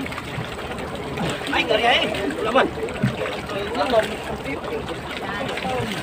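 Water sloshes and splashes beside a boat.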